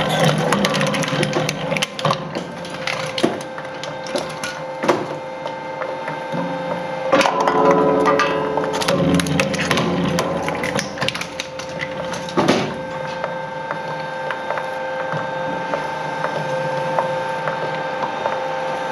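A metal canister bangs and clatters against the shredder's blades.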